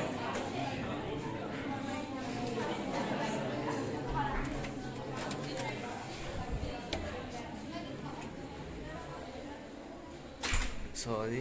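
A crowd of people murmurs and chatters nearby indoors.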